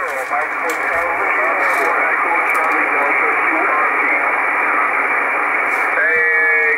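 A shortwave radio hisses and crackles with static through a small speaker.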